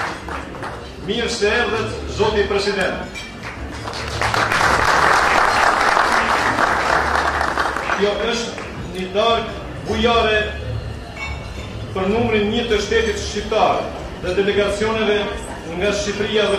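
A middle-aged man speaks calmly into a microphone, heard through loudspeakers in a large room.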